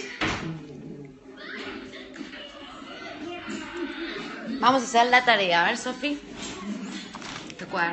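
A young woman talks close up, with animation.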